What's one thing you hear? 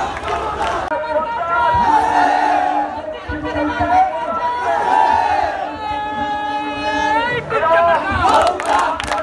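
A crowd of young men chants loudly in unison.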